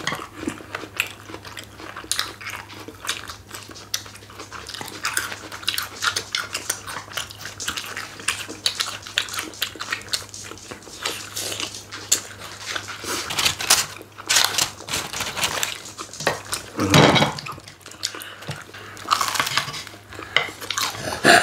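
People chew crunchy fried chicken loudly and close up.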